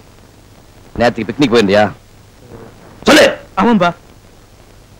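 A man speaks sharply, close by.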